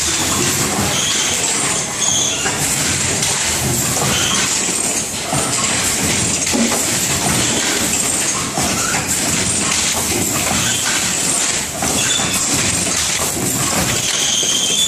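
A packing machine whirs and clatters steadily.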